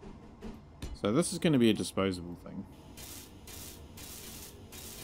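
A welding tool hisses and buzzes in short bursts.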